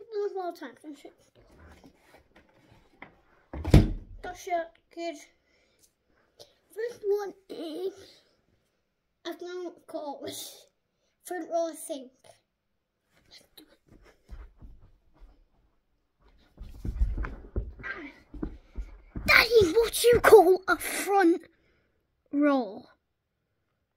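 A young boy talks close by, with animation.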